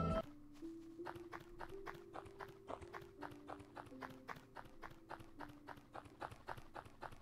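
Quick, even game footsteps tap along.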